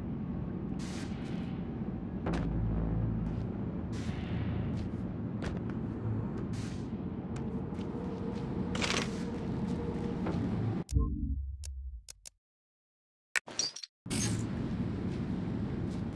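A low mechanical rumble drones steadily.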